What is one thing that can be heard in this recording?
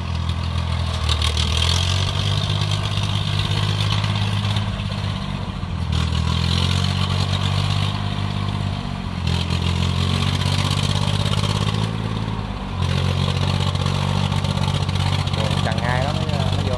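The diesel engine of a small rice tractor chugs under load.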